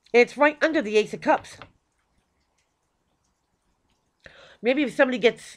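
A woman speaks calmly and close by, pausing between phrases.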